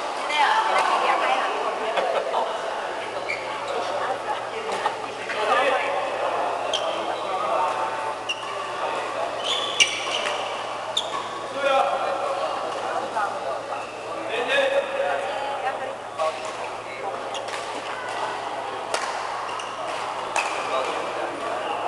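Shuttlecocks are struck with rackets in sharp pops, in a large echoing hall.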